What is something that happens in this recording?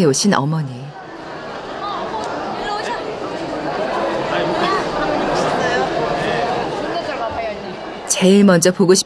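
Several women chatter and greet each other warmly.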